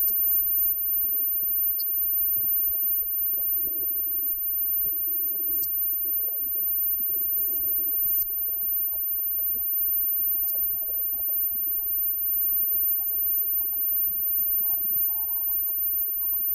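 An electric guitar plays through an amplifier.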